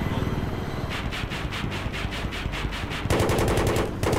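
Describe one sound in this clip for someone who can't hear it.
A cannon fires in rapid bursts.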